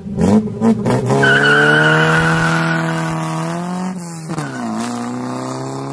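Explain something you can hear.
A car accelerates and drives away, its engine rising in pitch and fading.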